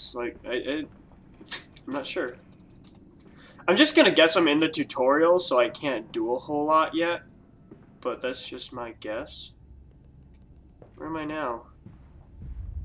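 A young man talks with animation into a headset microphone, close up.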